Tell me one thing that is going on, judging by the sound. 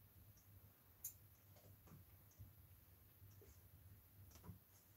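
Small objects knock softly on a table now and then.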